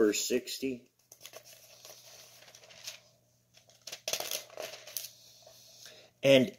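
Paper pages rustle as a book is leafed through.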